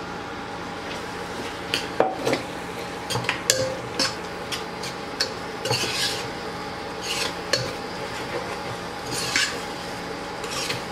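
A metal spatula scrapes and clinks against a pot while stirring food.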